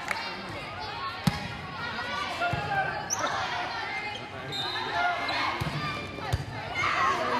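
Young women call out and shout to one another on the court.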